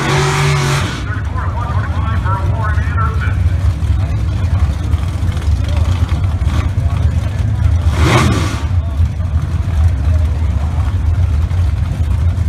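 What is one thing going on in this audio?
Drag racing car engines idle with a deep, loud rumble outdoors.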